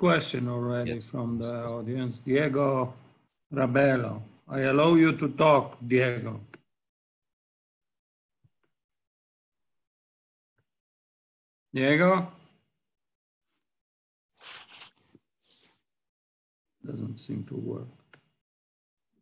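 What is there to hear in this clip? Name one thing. An elderly man speaks calmly over an online call, with pauses.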